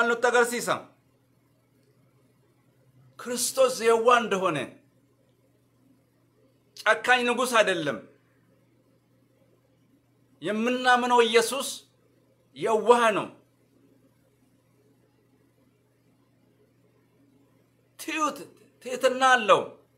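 A man speaks calmly and close up, in short phrases with pauses.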